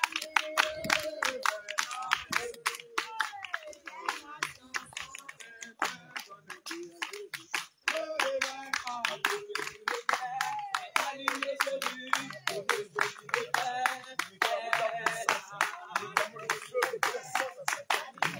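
A man prays aloud with animation, close by.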